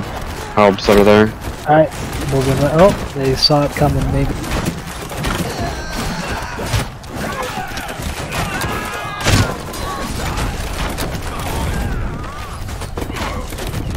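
Swords and shields clash and clang in a battle.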